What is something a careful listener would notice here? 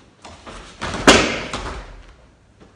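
A body thuds heavily onto a padded mat.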